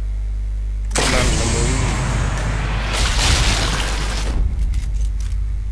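A rifle fires with a loud blast that rumbles and echoes.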